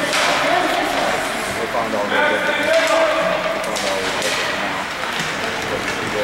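Children shout and call out across the rink.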